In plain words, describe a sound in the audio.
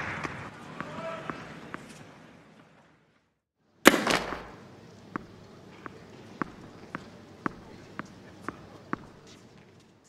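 A tennis ball bounces repeatedly on a court.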